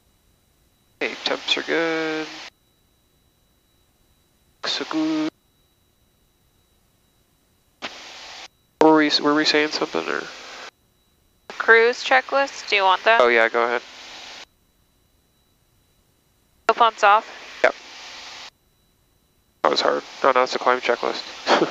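A man speaks calmly over an aircraft intercom.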